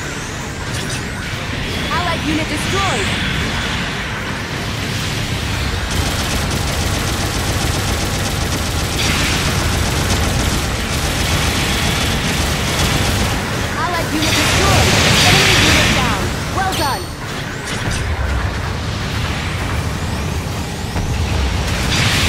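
Laser beams hum and buzz steadily.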